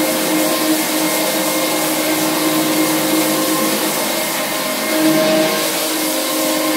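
A rotary floor sander hums as its pad grinds across a wooden floor.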